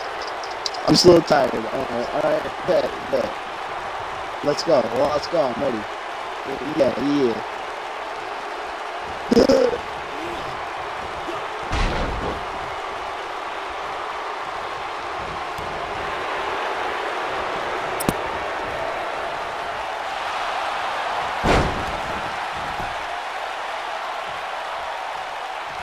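A large crowd cheers and murmurs steadily in a big echoing arena.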